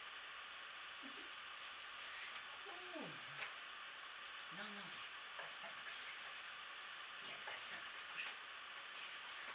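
Paws scuffle and thump on a carpeted floor.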